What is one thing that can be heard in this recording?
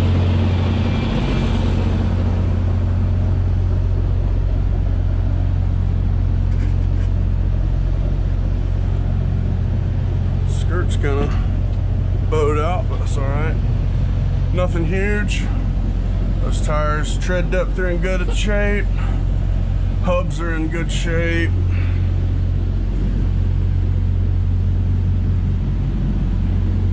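A truck engine idles nearby with a steady low rumble.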